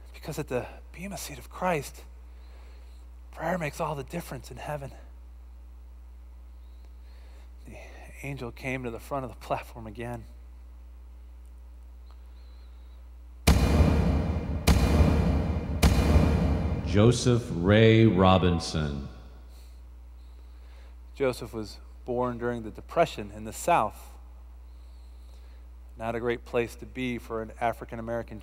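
A man speaks slowly, with long pauses.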